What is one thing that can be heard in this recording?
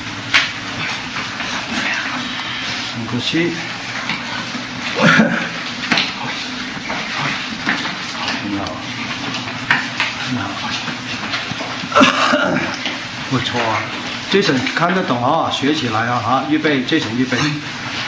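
Young men talk and call out nearby in an echoing room.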